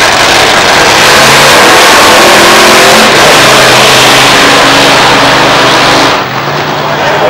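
A nitro-fuelled dragster roars away at full throttle.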